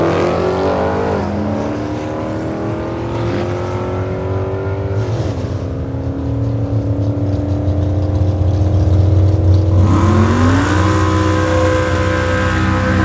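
A powerful car engine roars loudly, revving high and dropping in pitch at each gear change.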